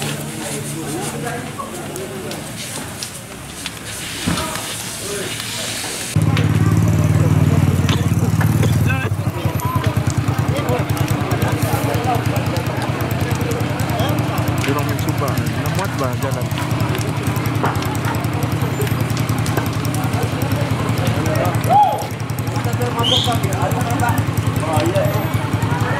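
A house fire roars and crackles.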